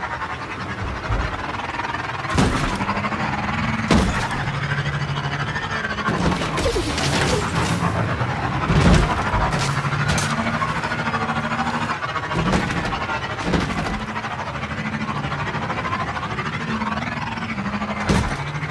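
A hover bike engine hums steadily as it speeds over rough ground.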